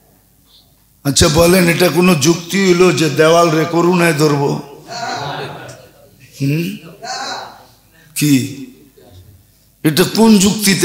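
An elderly man preaches forcefully into a microphone, heard through loudspeakers in an echoing hall.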